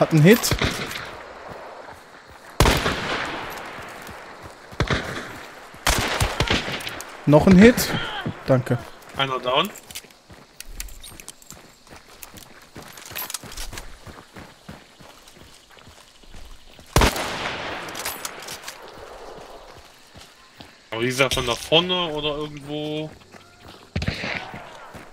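Loud gunshots bang and echo outdoors.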